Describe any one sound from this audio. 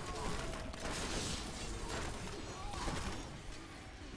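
Magic blasts crackle and whoosh in quick bursts.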